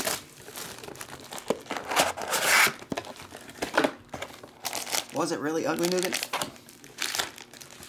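A cardboard box scrapes and rubs as it is opened and handled.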